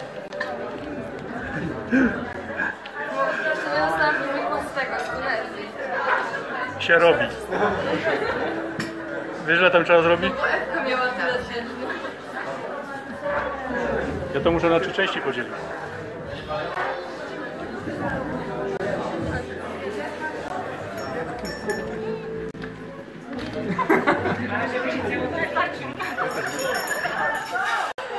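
Many men and women chatter and laugh nearby in a busy room.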